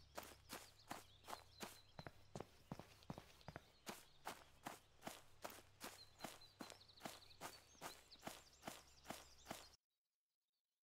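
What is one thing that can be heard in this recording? Footsteps run quickly and steadily through grass.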